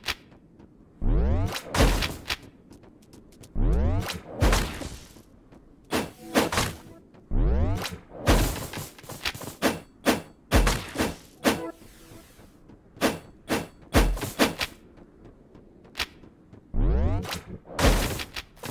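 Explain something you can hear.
Blades whoosh and strike in quick bursts of fighting.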